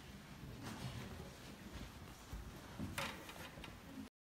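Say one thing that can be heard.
An elderly man speaks calmly in a room with a slight echo.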